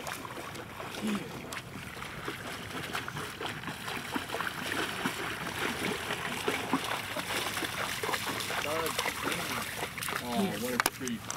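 A dog splashes through shallow water.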